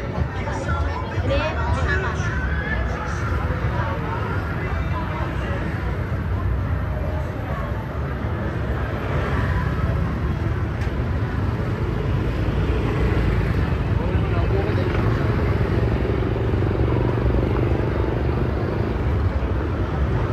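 Motorbike engines hum past on a busy street.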